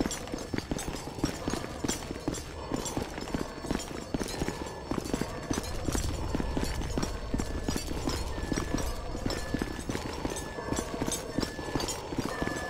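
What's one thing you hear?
Heavy boots clomp quickly up metal stairs.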